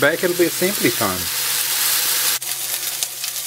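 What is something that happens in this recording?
Patties sizzle in a hot frying pan.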